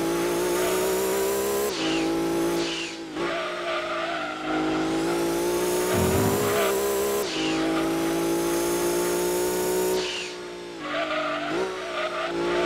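A race car engine roars at high revs, dropping in pitch at each gear change and rising again.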